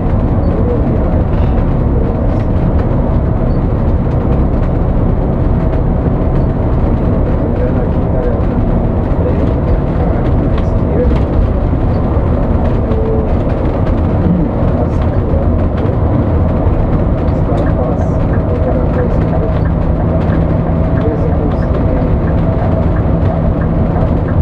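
Tyres roar on the road.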